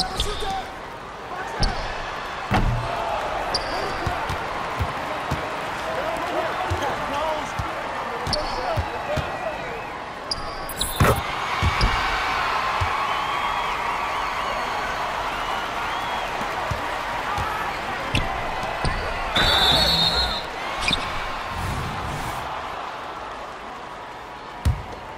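Sneakers squeak on a hardwood court in a basketball video game.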